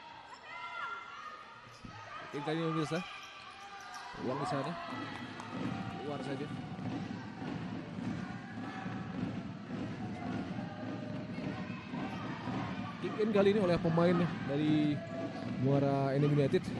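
A ball thumps off a player's foot.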